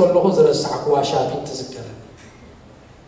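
A man speaks emphatically into a microphone over a loudspeaker.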